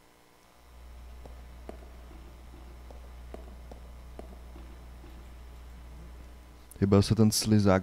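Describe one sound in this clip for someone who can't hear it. Footsteps clack on a hard floor.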